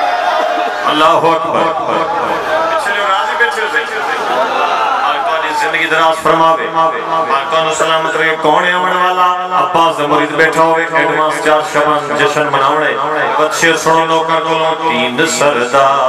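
A young man sings through a microphone and loudspeakers.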